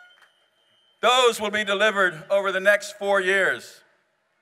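A man speaks loudly into a microphone over loudspeakers in a large hall.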